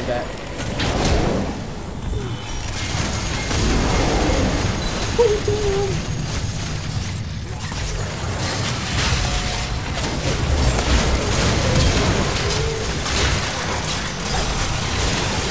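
Game spell blasts and sword hits clash in quick, busy bursts.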